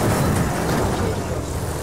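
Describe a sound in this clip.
Car bodies crunch together in a collision.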